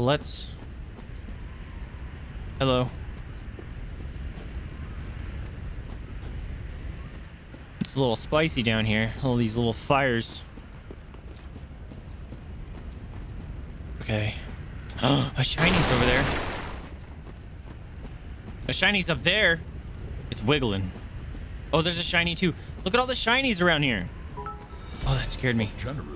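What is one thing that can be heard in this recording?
A young man talks in bursts, close to a microphone.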